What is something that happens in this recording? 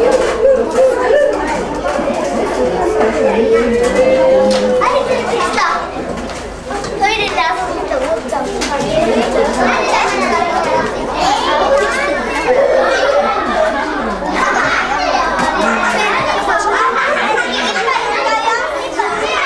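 Metal serving spoons clink against trays and bowls.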